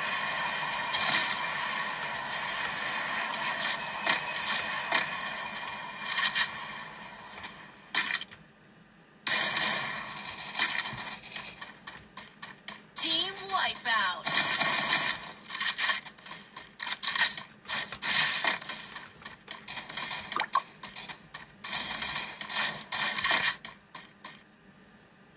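Rapid gunfire and game effects play from a small phone speaker.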